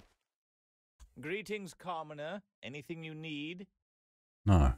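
An elderly man speaks calmly and slowly.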